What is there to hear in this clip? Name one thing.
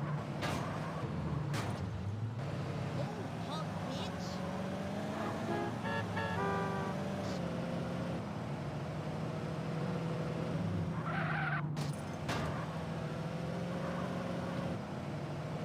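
A car engine hums steadily as it drives.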